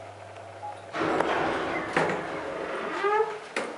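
An elevator door rattles and slides open.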